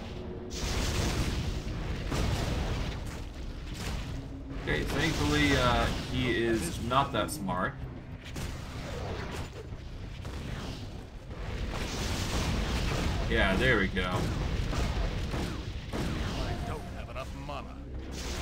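Fiery spells roar and crackle in bursts.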